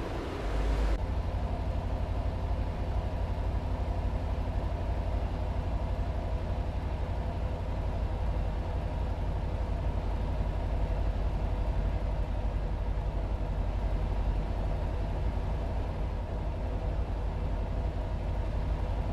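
A truck engine drones low and steady, heard from inside the cab.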